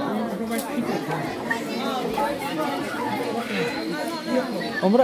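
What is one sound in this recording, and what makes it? A crowd of adults and children chatter in an echoing hall.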